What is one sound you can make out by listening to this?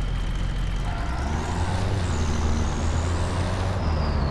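A truck's engine revs up as it pulls away.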